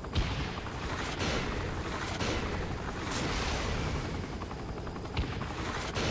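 A helicopter's rotors thump and whir steadily overhead.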